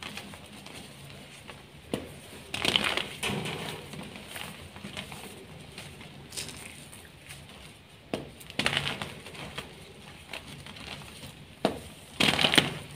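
Dry powder rustles and sifts between fingers.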